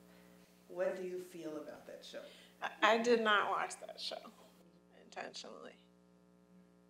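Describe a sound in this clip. A woman talks close by with animation.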